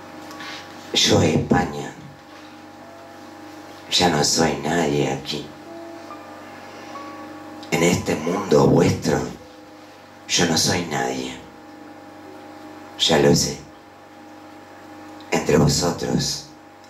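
An elderly woman reads aloud slowly into a microphone, pausing between lines.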